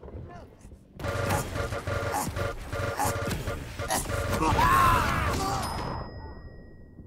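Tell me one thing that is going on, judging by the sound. Rapid weapon fire and explosions blast loudly.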